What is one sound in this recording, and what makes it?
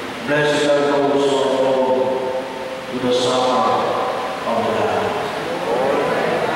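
A man chants through a microphone in a large echoing hall.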